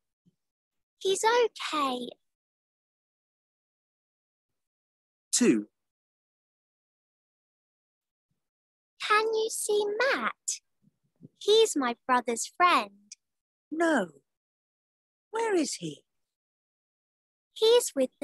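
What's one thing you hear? A woman speaks clearly and slowly over an online call, with pauses between phrases.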